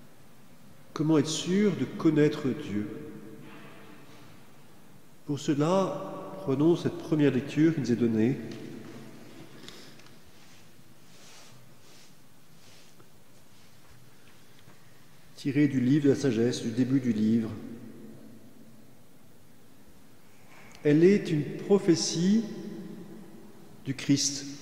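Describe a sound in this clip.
A man chants in short phrases through a microphone, echoing in a large hall.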